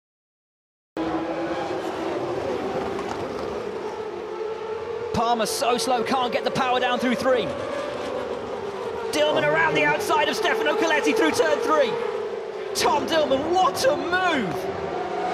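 Racing car engines scream past, rising and falling in pitch.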